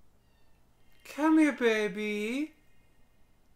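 A bright magical chime rings out with a rising shimmer.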